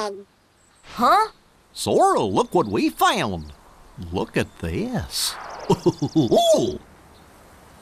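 A goofy young male cartoon voice speaks cheerfully.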